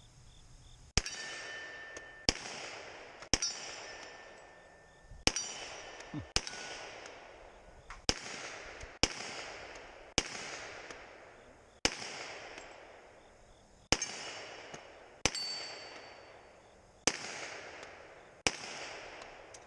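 A handgun fires loud single shots outdoors, each echoing off the surroundings.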